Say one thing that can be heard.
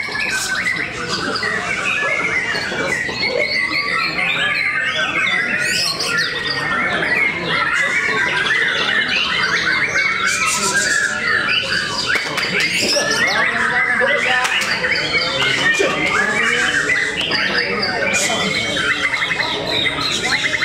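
Many caged songbirds chirp and trill constantly, overlapping one another.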